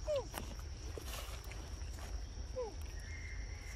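A young monkey squeaks softly.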